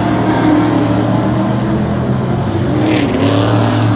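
A race car engine roars.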